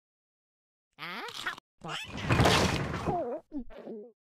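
A cartoon cat munches food with loud chomping.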